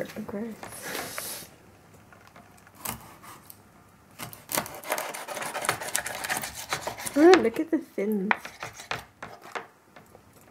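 A knife scrapes scales off a fish.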